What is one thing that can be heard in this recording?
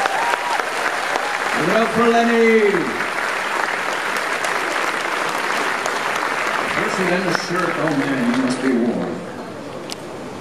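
A crowd cheers and whistles loudly in a large echoing hall.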